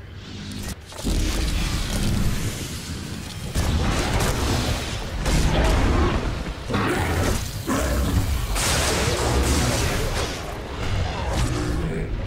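Crackling energy zaps and buzzes in bursts.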